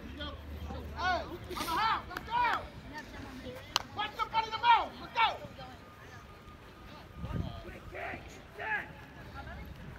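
Young players shout to each other across an open field outdoors.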